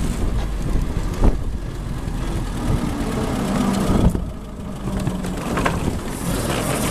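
An old car's engine rumbles steadily while driving.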